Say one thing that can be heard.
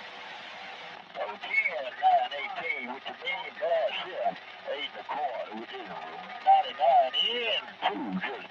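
A man speaks through a crackly radio loudspeaker.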